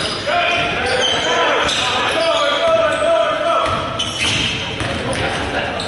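A basketball bounces on a wooden floor, echoing in a large gym.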